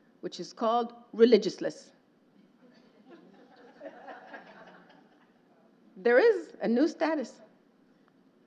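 A woman speaks into a microphone in a calm, measured voice, pausing between phrases.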